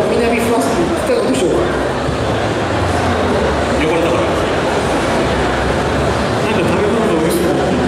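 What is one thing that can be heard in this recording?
A man speaks through a microphone over loudspeakers.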